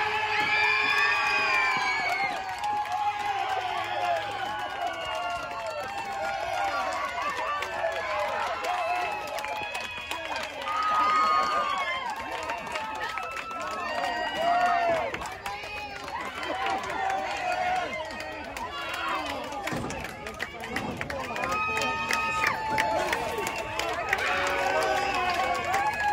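A crowd of young women cheer and shout excitedly outdoors.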